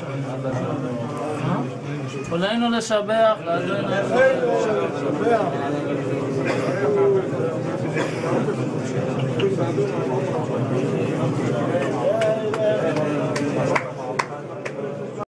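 An elderly man chants in a low voice, close by.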